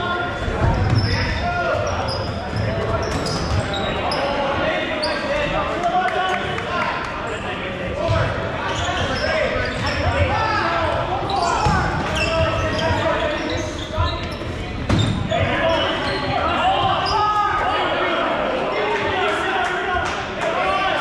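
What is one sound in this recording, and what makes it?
Young men shout and call out to each other in a large echoing gym.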